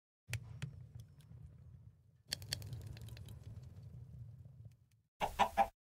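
A furnace fire crackles softly.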